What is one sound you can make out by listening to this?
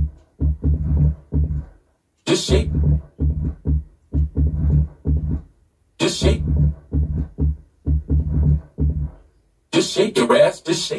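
Electronic dance music plays with a pounding bass beat and short pauses.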